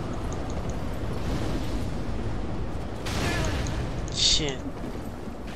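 A fireball bursts with a roar.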